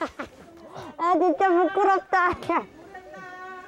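A young man laughs loudly and bashfully, close by.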